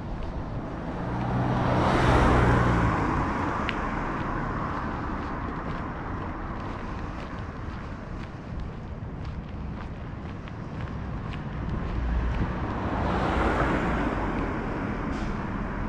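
A car drives past, rising and fading.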